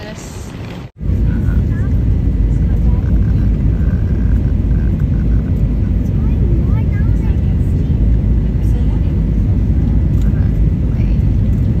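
A jet engine roars loudly and steadily inside an airplane cabin.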